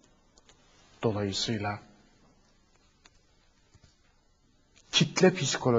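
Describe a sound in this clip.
A man speaks calmly into a microphone, close by, in short bursts.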